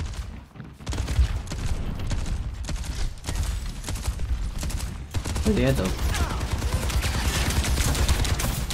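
Gunshots and blasts crackle rapidly in a fight.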